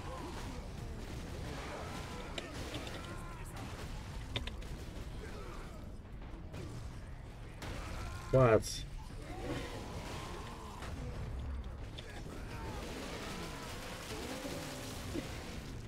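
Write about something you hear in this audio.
Blades clash and thud in a fast fight.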